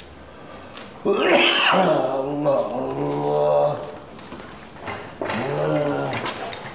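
A man speaks in a slow, drawn-out, strained voice nearby.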